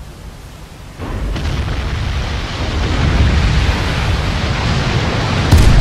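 Shells splash into the sea around a ship.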